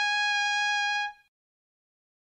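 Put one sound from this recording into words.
A short electronic tone beeps.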